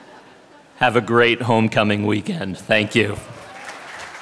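A middle-aged man speaks into a microphone over a loudspeaker in a large hall.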